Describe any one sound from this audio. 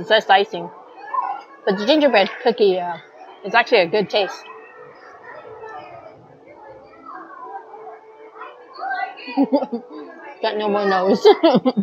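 An older woman talks with animation close to a microphone.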